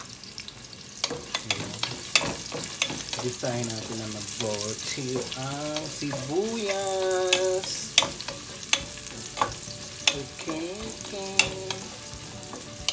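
Food sizzles softly in a hot pot.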